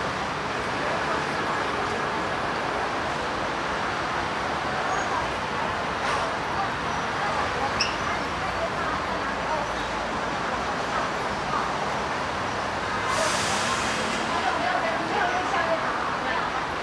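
Many people chatter steadily in a busy crowd outdoors.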